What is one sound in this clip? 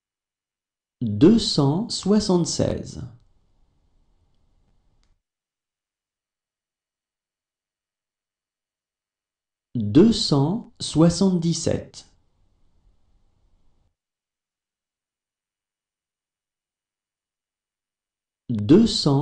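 A man reads out short phrases clearly through a microphone, pausing between them.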